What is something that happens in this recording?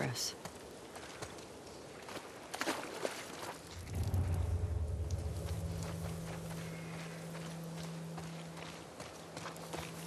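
Footsteps rustle through tall grass and brush.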